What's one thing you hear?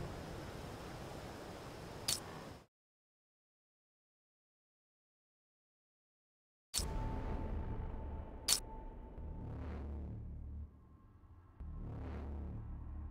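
Game menu music plays softly.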